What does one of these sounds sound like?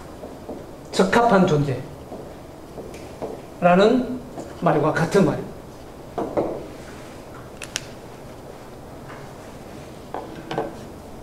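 A man speaks in short bursts, lecturing.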